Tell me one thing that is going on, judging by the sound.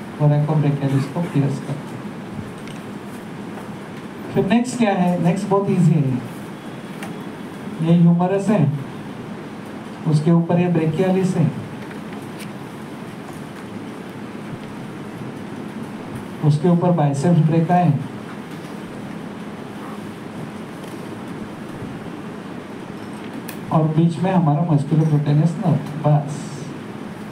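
A man speaks calmly in short bursts through a microphone.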